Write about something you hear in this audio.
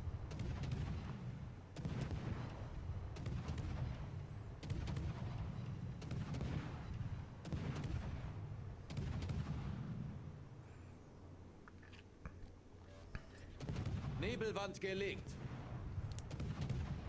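Heavy naval guns fire in deep, rumbling booms again and again.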